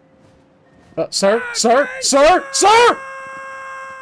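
A man shouts excitedly into a microphone.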